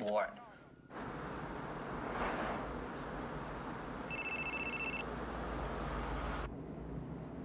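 Cars drive by on a highway with a steady rush of traffic.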